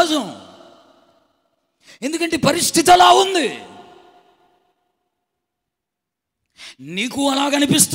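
A man speaks with animation into a microphone, with pauses between phrases, in a reverberant room.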